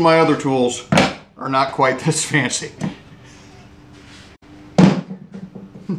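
A wooden tool knocks sharply on a workbench.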